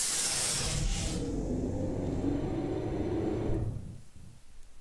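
A lift rumbles and rattles loudly as it moves.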